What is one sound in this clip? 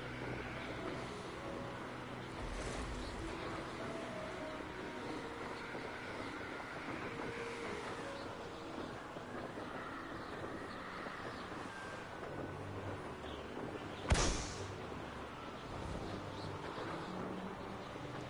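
Wind rushes steadily past during fast flight.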